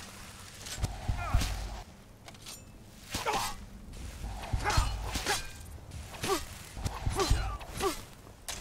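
Heavy blows land with dull thuds.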